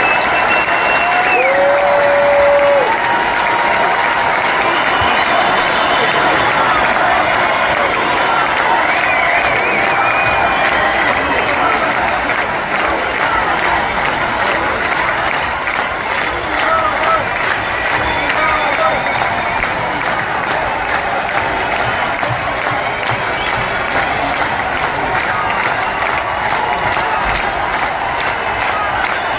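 Live band music plays loudly through the arena's loudspeakers.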